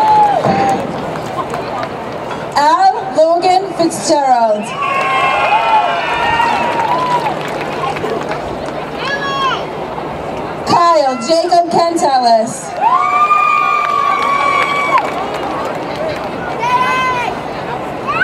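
A crowd cheers and applauds in the distance.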